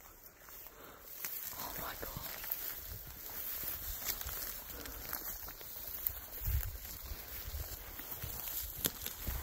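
Footsteps swish through long dry grass.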